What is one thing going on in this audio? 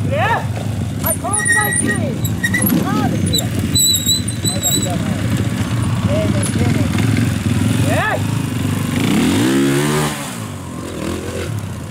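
A motorcycle engine revs in sharp bursts, rising and falling.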